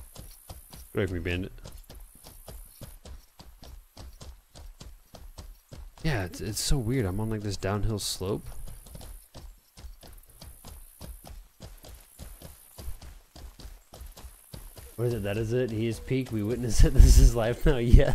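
A man talks animatedly into a close microphone.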